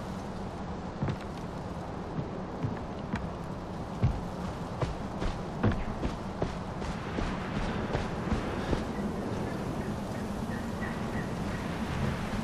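Footsteps crunch on rock and snow.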